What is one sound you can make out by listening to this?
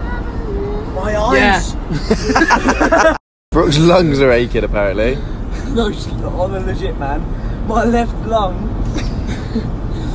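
A young man talks and laughs close by, with animation.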